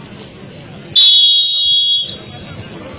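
A whistle blows loudly.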